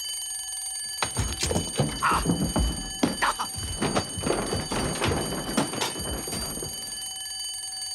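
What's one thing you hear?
Things clatter and bang nearby.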